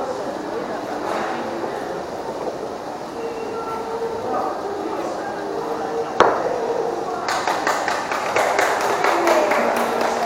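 A crowd of people murmur and chat nearby in an echoing room.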